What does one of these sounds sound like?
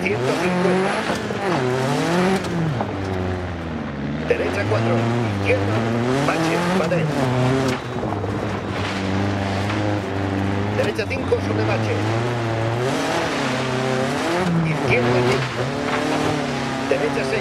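A rally car engine revs hard, rising and falling in pitch as the gears change.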